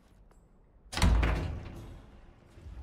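A heavy floor hatch thuds open with a deep boom.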